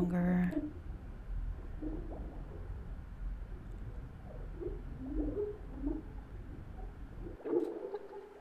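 Water rumbles in a low, muffled way, as if heard underwater.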